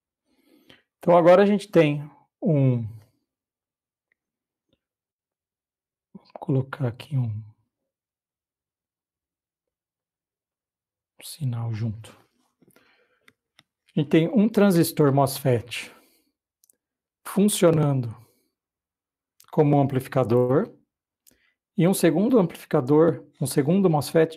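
A man speaks calmly in short phrases with pauses, heard through an online call microphone.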